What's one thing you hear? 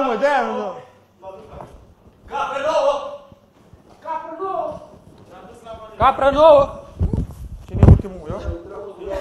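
Young men talk with animation nearby.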